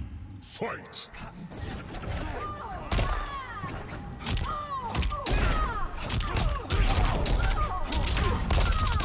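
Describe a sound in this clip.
Heavy punches and kicks land with sharp thuds and cracks.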